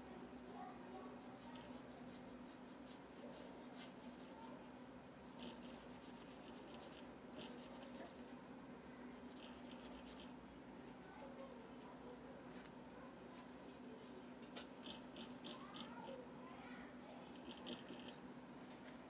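A pencil scratches in quick strokes on paper.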